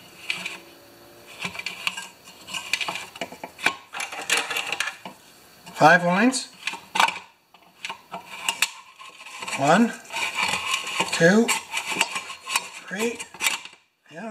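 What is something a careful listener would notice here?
A small metal tool scrapes and clicks against a plastic part.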